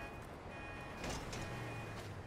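A bicycle crashes to the ground with a thud.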